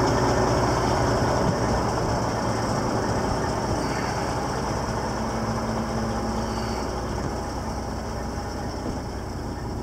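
A large truck engine idles nearby with a low, steady rumble.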